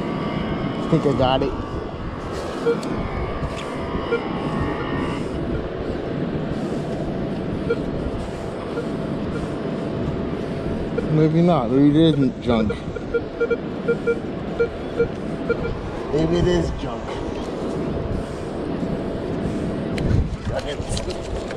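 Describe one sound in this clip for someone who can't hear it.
A metal detector gives warbling beeps.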